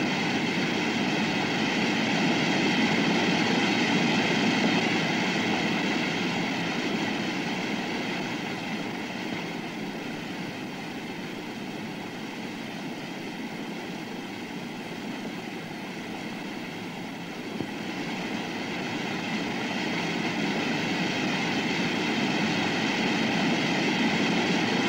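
A waterfall roars and crashes steadily.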